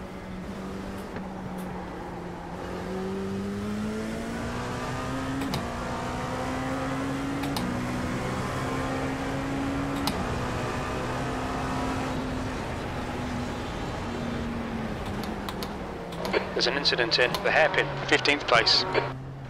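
A race car engine drones steadily, rising and falling in pitch as it shifts gears.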